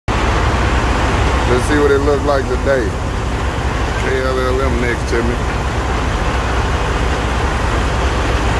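A fuel pump hums steadily as fuel flows.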